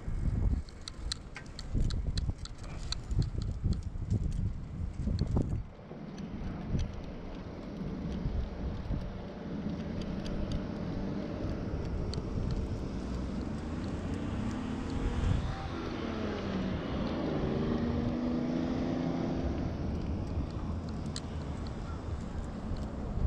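Wind rushes loudly outdoors.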